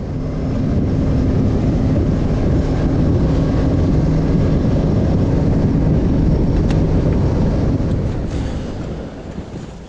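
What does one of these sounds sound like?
Water rushes past the hull.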